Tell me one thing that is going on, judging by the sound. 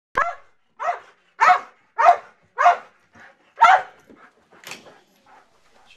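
A dog barks loudly and repeatedly close by.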